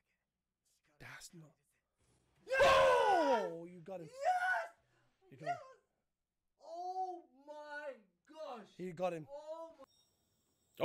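A man speaks and exclaims excitedly close to a microphone.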